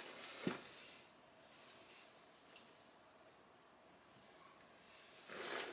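Loose fabric rustles softly as a woman turns.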